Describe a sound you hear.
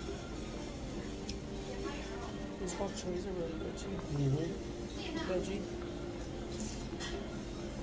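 A man slurps noodles loudly, close by.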